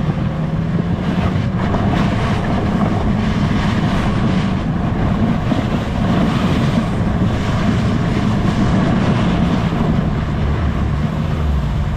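A snowmobile engine drones while towing a sled.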